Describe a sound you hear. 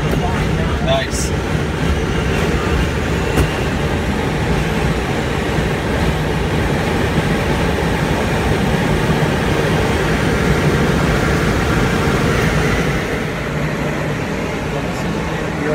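Wind rushes loudly past the cockpit.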